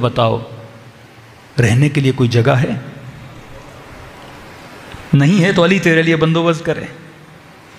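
A man speaks with animation into a microphone, heard through a loudspeaker.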